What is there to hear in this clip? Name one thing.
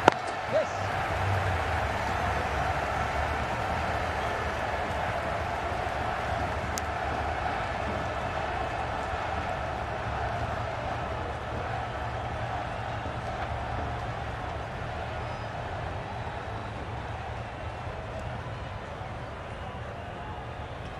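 A large stadium crowd murmurs and cheers steadily in the distance.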